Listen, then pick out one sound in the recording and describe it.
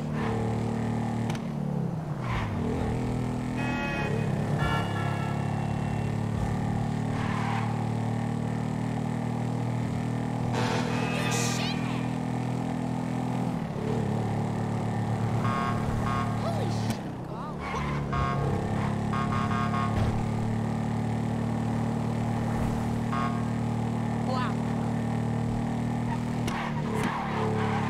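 A motorcycle engine drones steadily and revs up and down.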